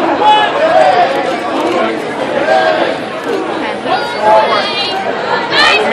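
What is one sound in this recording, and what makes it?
People in a crowd cheer and whoop with excitement.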